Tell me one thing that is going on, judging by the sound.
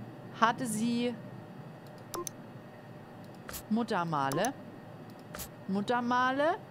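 A young woman speaks in short, drawn-out phrases close to a microphone.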